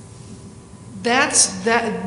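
An older woman speaks calmly into a microphone in a large hall.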